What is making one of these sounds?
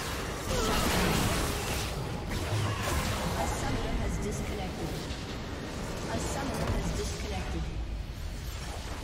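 Video game spell effects crackle and whoosh in a fast battle.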